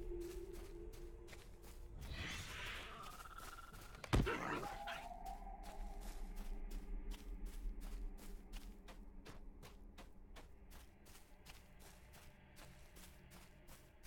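Footsteps thud on soft ground in a steady running rhythm.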